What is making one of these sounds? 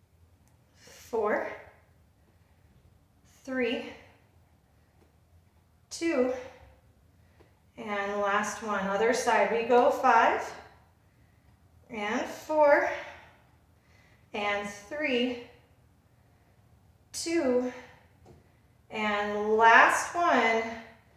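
A young woman speaks calmly, close to the microphone, in short phrases with pauses.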